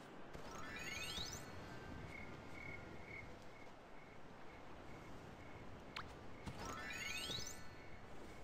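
A shimmering magical chime sweeps quickly upward.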